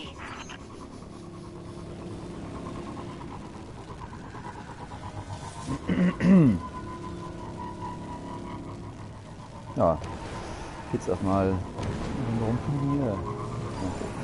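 A hover bike engine hums steadily as it speeds along.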